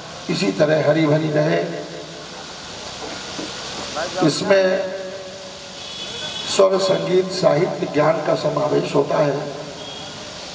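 A middle-aged man sings expressively into a microphone over a loudspeaker, with echo.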